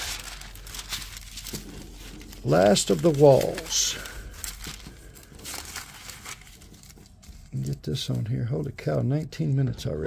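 Thin paper rustles and crinkles as it is handled.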